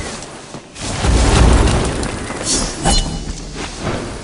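Heavy impacts thud and crash loudly.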